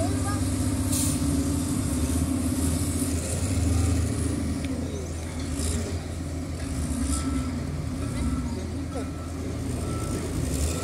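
A wheel loader's diesel engine rumbles steadily nearby.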